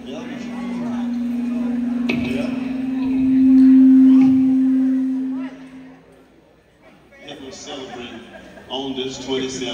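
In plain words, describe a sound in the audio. A live band plays in a large hall.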